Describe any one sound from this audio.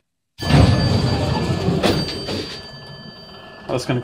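Elevator doors rumble as they slide open.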